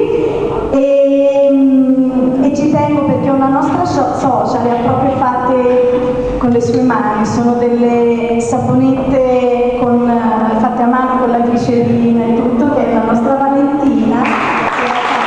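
A keyboard plays along.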